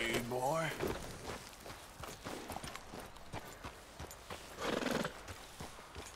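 A horse's hooves clop on a dirt track.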